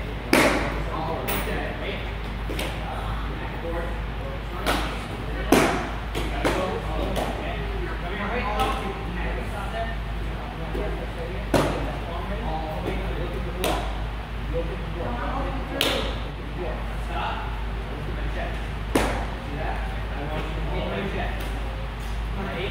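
Children's punches and kicks thump against a held pad in a large echoing hall.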